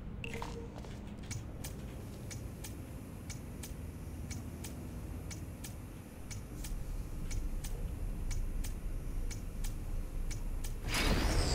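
A clock ticks steadily.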